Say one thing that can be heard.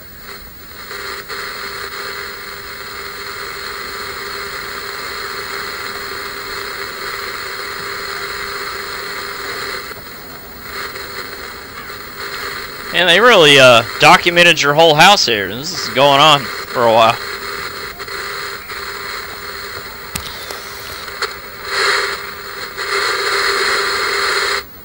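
A television hisses with steady static.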